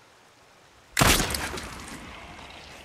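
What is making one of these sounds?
A gunshot bangs loudly and echoes.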